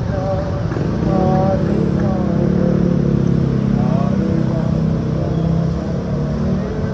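Motorcycle engines buzz past closely.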